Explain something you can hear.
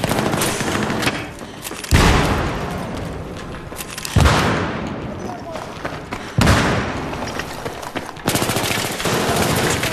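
A rifle fires rapid bursts of shots in a large echoing hall.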